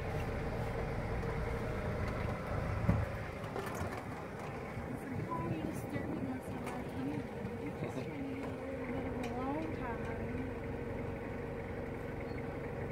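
A vehicle engine idles with a steady low hum.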